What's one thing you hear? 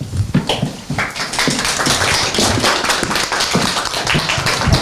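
Several people applaud.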